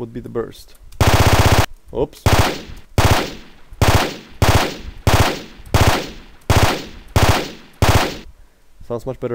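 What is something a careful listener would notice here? Recorded gunshots play back one after another, each with a ringing tail.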